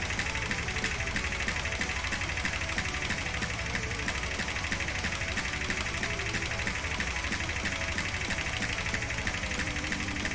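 Upbeat electronic music plays with a fast beat.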